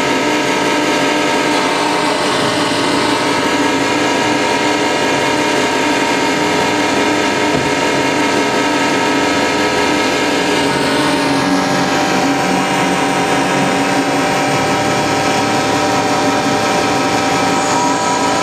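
Loud, dense droning music plays through speakers in an echoing room.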